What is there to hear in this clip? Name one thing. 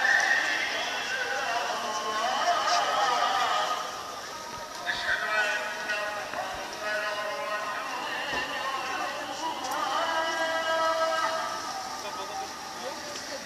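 A crowd chatters on a busy street outdoors.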